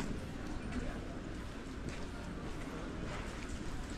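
Footsteps of passers-by tap on wet paving close by.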